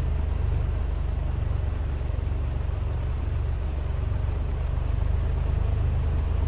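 A small propeller engine idles with a steady, low, throbbing hum.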